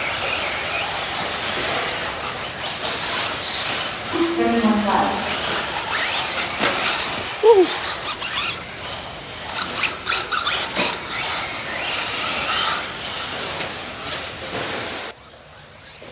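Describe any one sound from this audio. Small electric motors whine as remote-control cars race over dirt.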